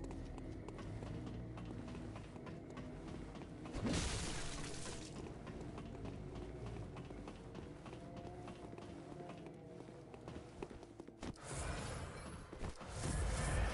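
Footsteps thud on stone floors.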